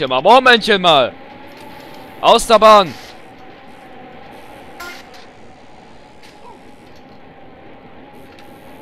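Bicycle tyres crunch over rough dirt.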